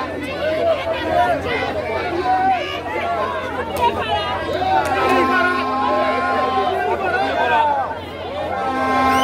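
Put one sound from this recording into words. A crowd chatters and calls out nearby.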